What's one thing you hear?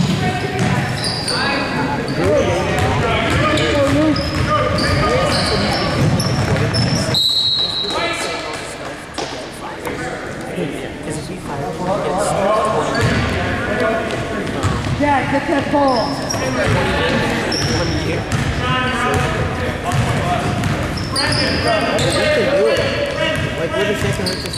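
A crowd of spectators talks and cheers nearby.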